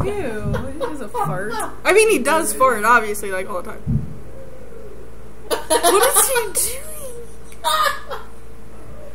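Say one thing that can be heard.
A young woman talks and giggles close to a microphone.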